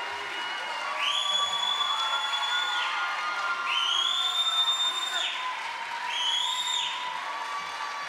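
A person in the crowd whistles shrilly several times.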